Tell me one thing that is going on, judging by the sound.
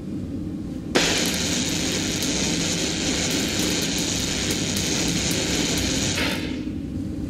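A roaring jet of flame hisses loudly, then cuts off abruptly.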